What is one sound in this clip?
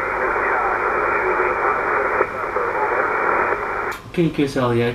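A voice comes through a radio speaker, narrow and crackly.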